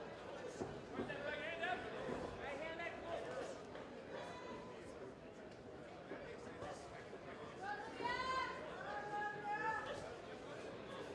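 Spectators shout and cheer in an indoor hall.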